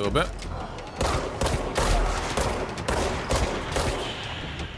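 A pistol fires a rapid string of shots.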